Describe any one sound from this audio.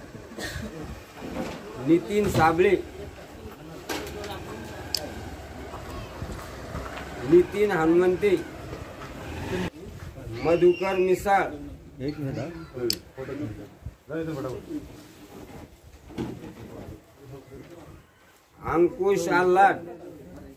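Several men talk and call out loudly nearby, in short bursts.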